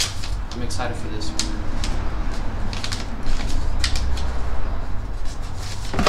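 Paper rustles as it is unfolded.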